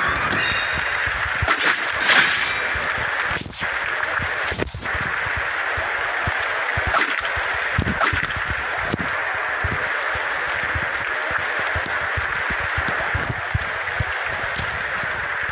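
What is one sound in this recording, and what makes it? Footsteps run quickly across a hard surface.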